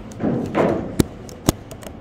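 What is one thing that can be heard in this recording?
A cue stick strikes a ball with a sharp click.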